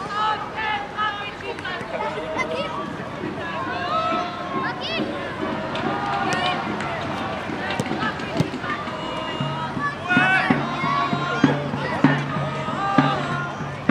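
A football thuds as it is kicked.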